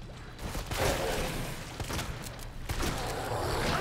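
A burst of fire roars.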